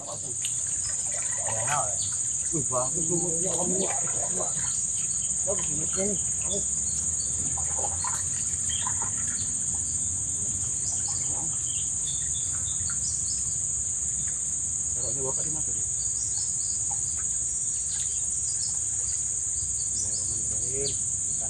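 A paddle splashes and dips in the water.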